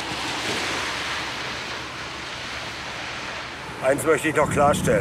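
A car drives past on a wet road with tyres hissing.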